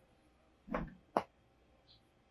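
A game card clicks into a handheld console.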